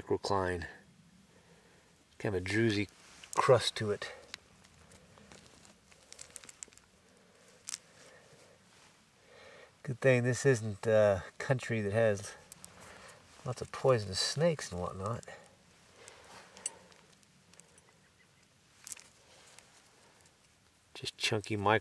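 Hands scrape and dig in loose soil.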